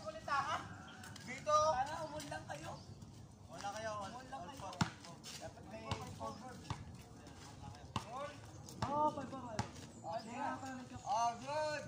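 Boys shout and call out to each other outdoors.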